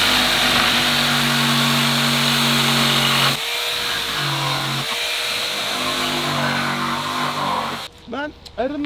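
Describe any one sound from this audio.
A power sander whirs loudly against wood.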